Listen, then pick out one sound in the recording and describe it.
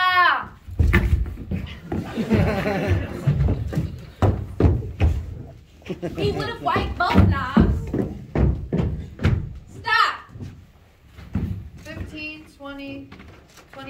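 A young woman sobs and wails.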